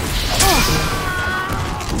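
A fire burst roars briefly.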